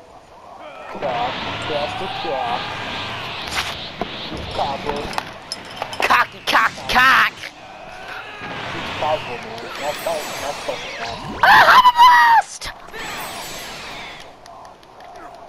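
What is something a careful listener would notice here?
Video game energy blasts whoosh and crackle.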